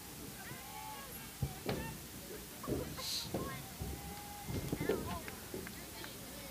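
Young women shout and cheer from a distance outdoors.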